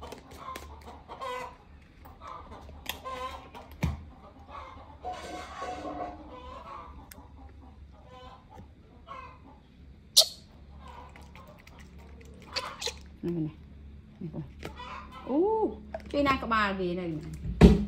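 A baby monkey sucks milk from a baby bottle.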